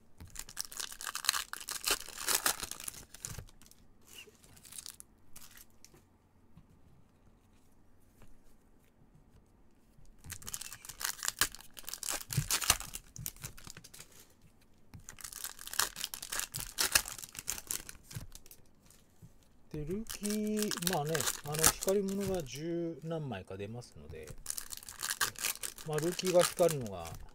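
Gloved hands tear open and crinkle a foil card pack.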